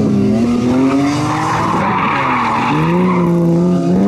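Tyres screech on tarmac as a car slides through a turn.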